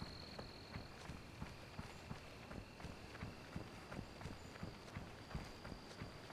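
Footsteps tread quickly and steadily through undergrowth on soft ground.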